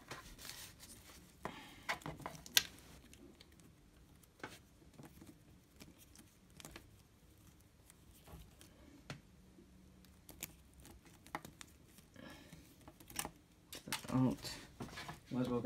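Plastic cables rustle and click as hands bundle them.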